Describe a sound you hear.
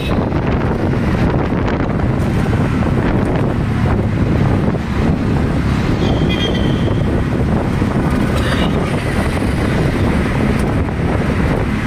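An auto-rickshaw engine rattles and drones steadily up close.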